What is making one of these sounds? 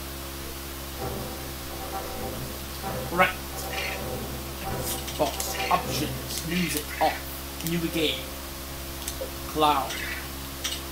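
Game music plays from a television speaker.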